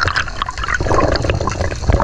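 Bubbles gurgle underwater.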